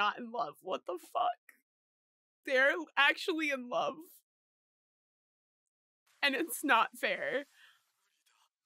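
A young woman talks with animation into a close microphone, in short bursts with pauses.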